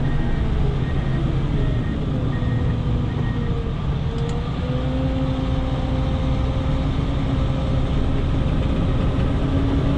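A heavy diesel engine rumbles and drones steadily from inside a cab.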